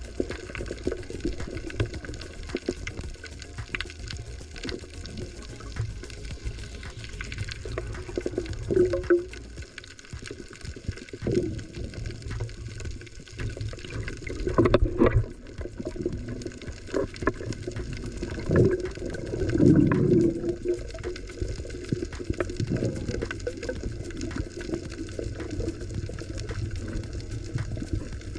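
Tiny clicks and crackles patter through the water.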